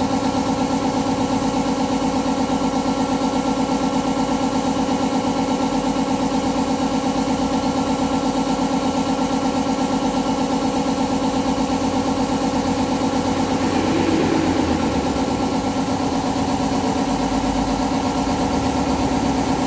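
A scooter engine idles steadily nearby.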